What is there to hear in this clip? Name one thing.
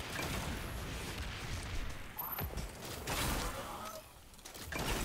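Game explosions and energy blasts crackle loudly.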